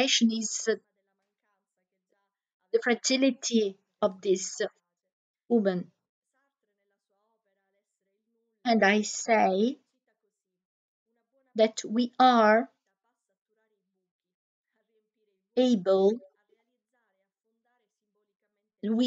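A woman speaks in short phrases over an online call, with pauses between them.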